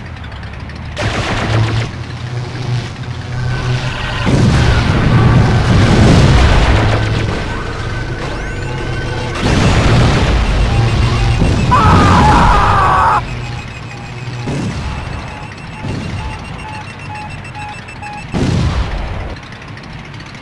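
Game weapons fire and explode in bursts.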